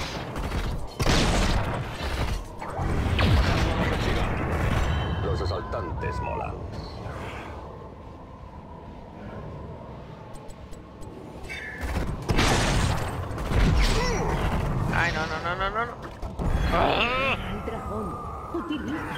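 Rapid gunfire and blasts crackle.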